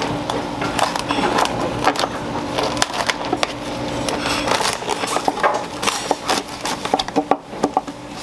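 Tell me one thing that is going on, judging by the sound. A knife cuts through fish flesh and bone with crunching scrapes.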